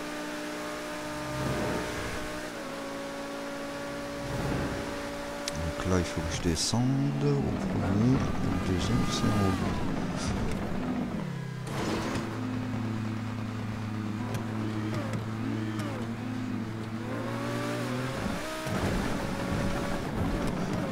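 A racing car engine roars at high speed, its pitch rising and falling.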